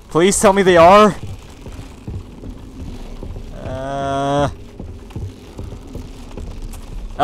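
Footsteps thud on a wooden rope bridge.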